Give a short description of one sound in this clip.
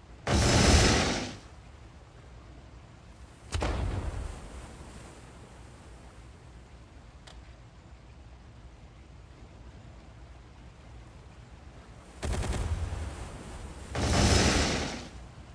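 Sea water washes steadily against a ship's hull.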